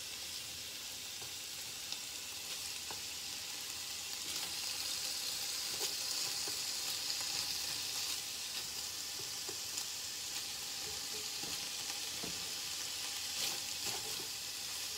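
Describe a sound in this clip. Chopsticks tap and scrape against a frying pan.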